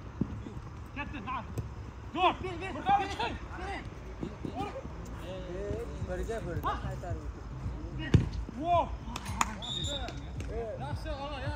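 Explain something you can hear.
Men shout and call out to each other across an outdoor pitch.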